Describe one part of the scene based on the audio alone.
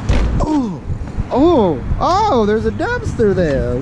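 A plastic dumpster lid bumps and scrapes.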